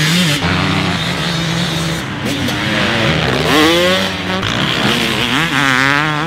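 A dirt bike engine revs hard, its pitch rising and falling.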